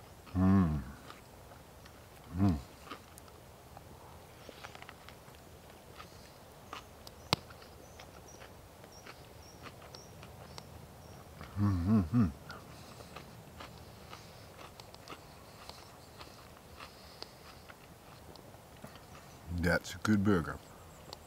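An older man speaks briefly and calmly, close by.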